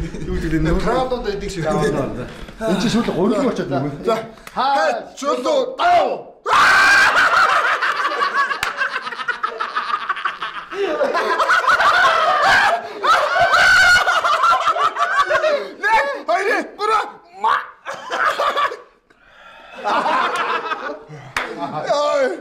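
Several men talk and shout excitedly nearby.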